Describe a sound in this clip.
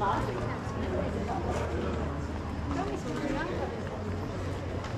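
Several people talk and chatter as they walk past.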